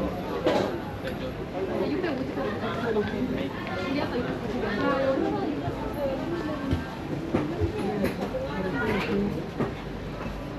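Young men and women chat casually nearby.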